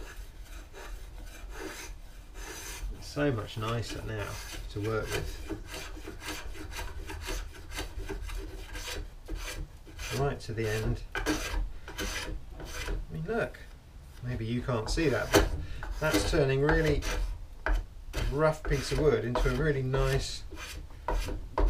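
A hand tool scrapes and shaves wood in quick strokes.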